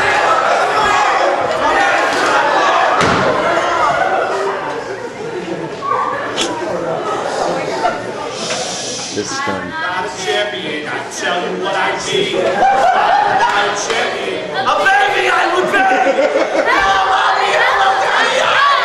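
A group of young people sing together in a large echoing hall.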